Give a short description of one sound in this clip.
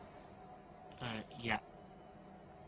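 A man speaks briefly in reply.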